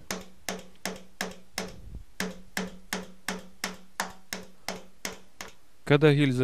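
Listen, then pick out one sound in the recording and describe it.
A wooden mallet knocks on a block of wood in a steady rhythm.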